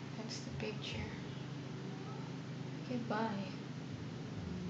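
A young woman speaks briefly and softly close to a microphone.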